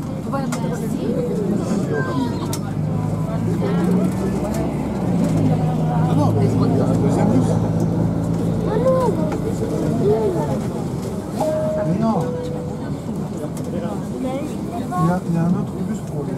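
Rain patters on a bus window.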